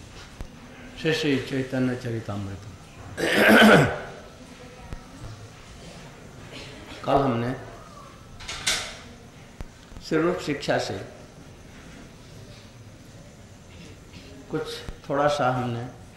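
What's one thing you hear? An elderly woman speaks slowly into a microphone, in bursts with long pauses.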